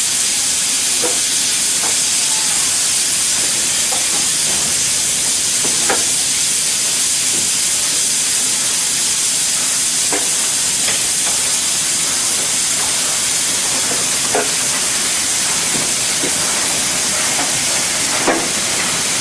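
A steam locomotive's metal parts clank now and then as it slowly moves.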